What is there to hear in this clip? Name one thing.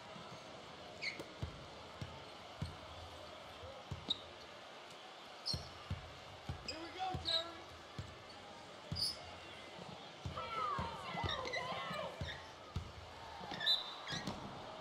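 Basketball shoes squeak sharply on a hardwood floor.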